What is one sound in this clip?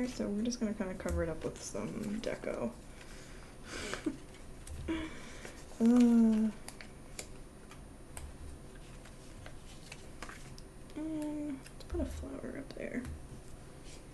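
A hand rubs and rustles against paper.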